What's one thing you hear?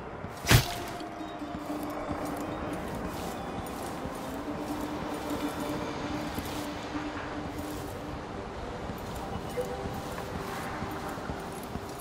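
Footsteps run quickly over stone and sand.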